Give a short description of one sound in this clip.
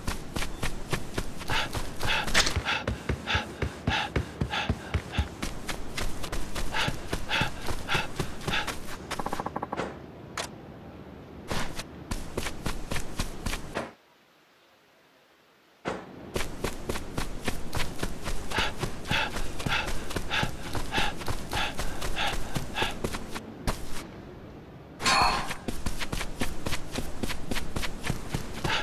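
Quick footsteps run over hard ground and wooden boards.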